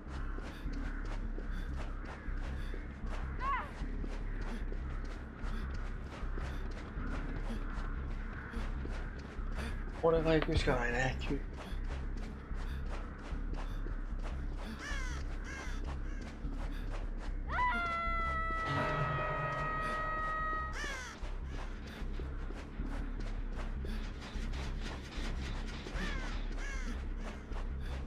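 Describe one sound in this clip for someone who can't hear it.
Footsteps thud quickly on sand as someone runs.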